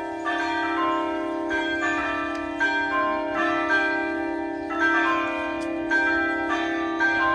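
A crowd of elderly men and women sings a hymn together outdoors.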